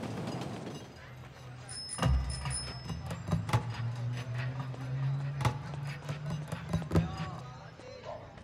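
A woman's heels click on pavement.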